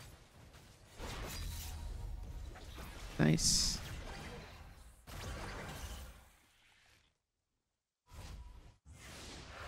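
Video game sound effects whoosh and clash.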